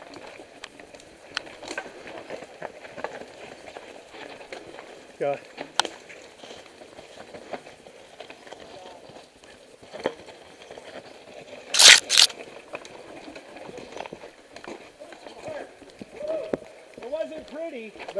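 Bicycle tyres rattle and crunch over a rough dirt trail.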